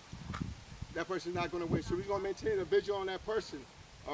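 A man speaks calmly outdoors to a group.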